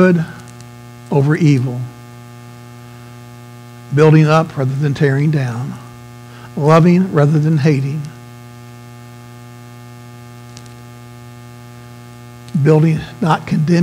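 A middle-aged man speaks expressively through a microphone, pausing between phrases.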